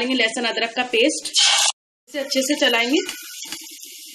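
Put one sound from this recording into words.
Sliced onions drop into hot oil.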